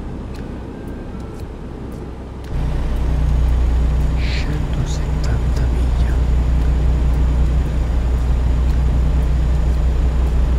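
A truck engine rumbles steadily, growing louder after a few seconds.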